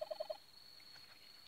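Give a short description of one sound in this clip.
Quick electronic beeps sound from a game's small speaker.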